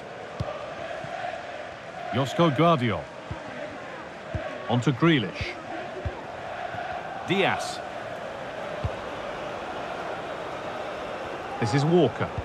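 A stadium crowd murmurs and cheers steadily all around.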